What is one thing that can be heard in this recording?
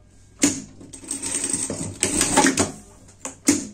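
A sewing machine whirs in a short fast burst.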